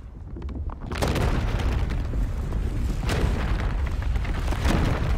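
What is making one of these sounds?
Mist hisses and rumbles as it billows up.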